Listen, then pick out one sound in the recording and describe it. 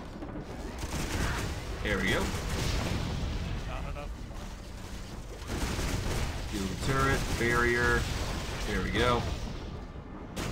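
Magic blasts whoosh and crackle in bursts.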